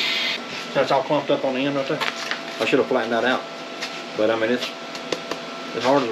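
A foil bag crinkles in a man's hands.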